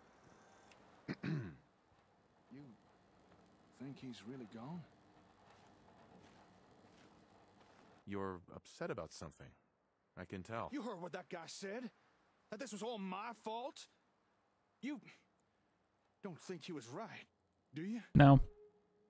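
A man speaks with emotion.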